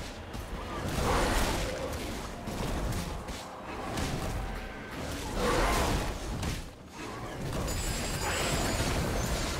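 Game combat sound effects clash and crackle.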